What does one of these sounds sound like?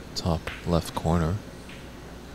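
Snooker balls click sharply against each other.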